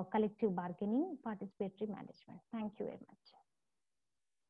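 A young woman speaks calmly through a microphone on an online call.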